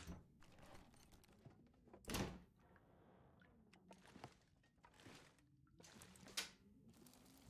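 Wooden cabinet drawers rattle and knock as someone rummages through them.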